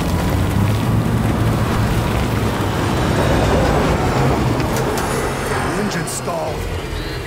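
Heavy rain pours down in a strong wind.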